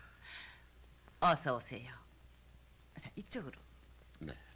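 An older woman speaks warmly.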